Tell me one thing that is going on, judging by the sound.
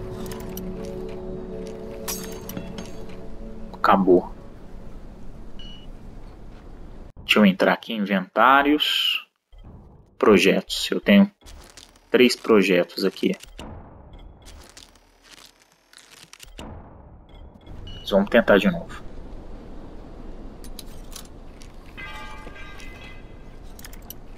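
A metal lockpick scrapes and clicks inside a lock.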